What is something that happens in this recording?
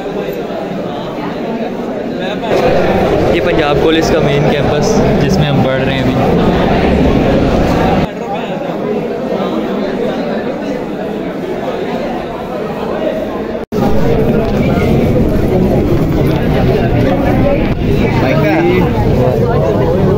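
A crowd of young men chatter loudly nearby.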